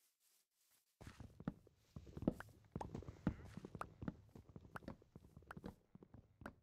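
Wooden blocks and leaves crunch under quick, repeated blows.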